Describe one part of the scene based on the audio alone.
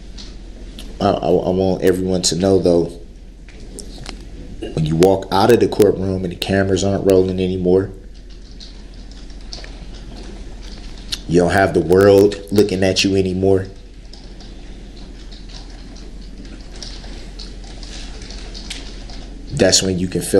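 A man speaks in short bursts with pauses.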